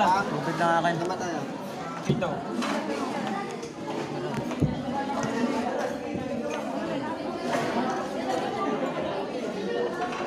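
Cups and crockery clink.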